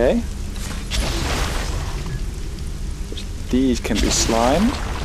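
Slime sprays out with a wet gush.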